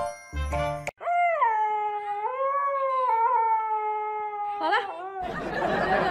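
A dog howls in long, wavering tones.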